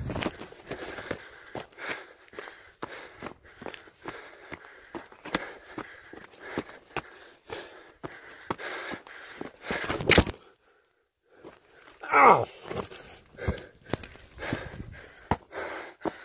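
Footsteps crunch on loose stones and gravel.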